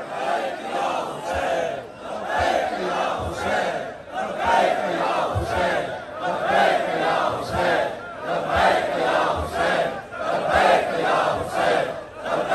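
A large crowd of men chants loudly in rhythm outdoors.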